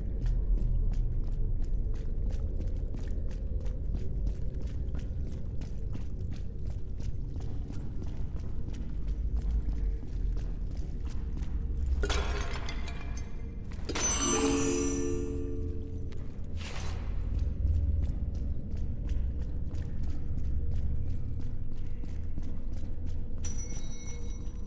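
Quick footsteps run over stone in an echoing space.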